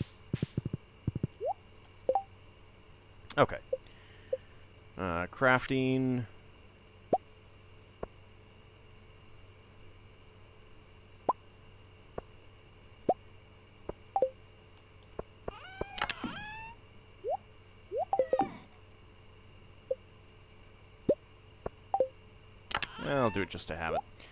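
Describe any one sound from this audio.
Short game menu clicks and blips sound again and again.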